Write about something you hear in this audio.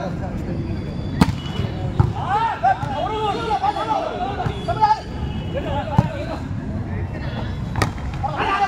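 A crowd of young men shouts and cheers outdoors.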